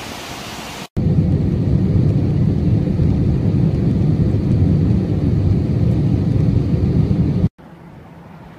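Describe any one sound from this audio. A jet engine roars steadily from inside an airliner.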